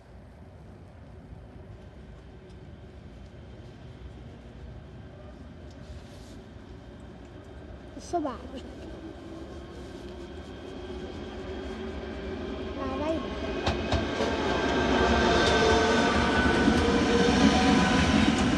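A train approaches and roars past close by, growing louder.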